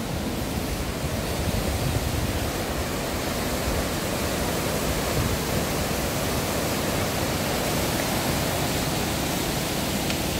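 A waterfall splashes and roars steadily nearby.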